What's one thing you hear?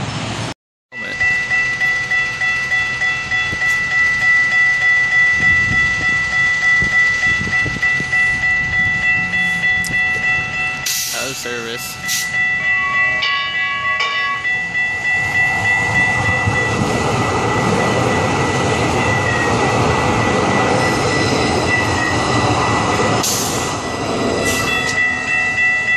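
A level crossing bell rings rapidly and steadily.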